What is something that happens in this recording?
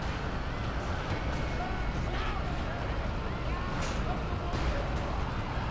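Metal crunches as cars are crushed.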